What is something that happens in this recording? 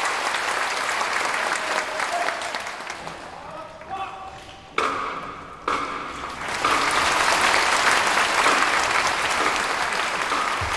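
A brass marching band plays in a large echoing hall.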